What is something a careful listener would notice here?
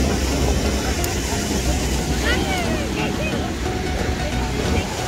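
Sea waves lap and wash gently against a shore.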